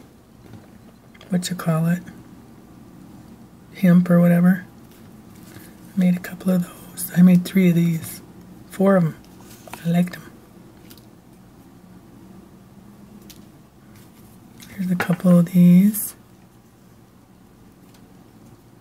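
Paper strips rustle softly as they are handled.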